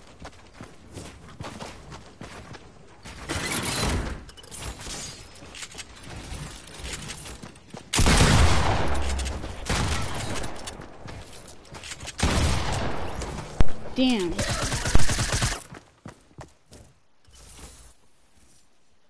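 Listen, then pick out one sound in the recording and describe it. Gunfire and impacts from a video game crackle in loud bursts.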